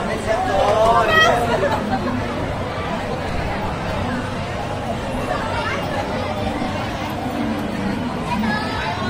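A crowd chatters outdoors in a busy street.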